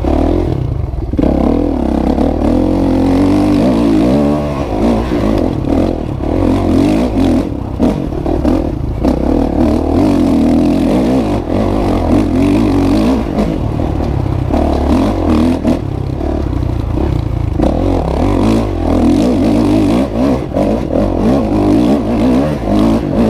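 Tyres crunch and rattle over a bumpy dirt track.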